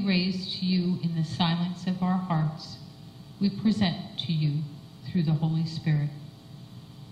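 An elderly woman speaks calmly and slowly into a microphone.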